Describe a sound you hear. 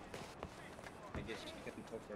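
Men murmur and talk in a crowd.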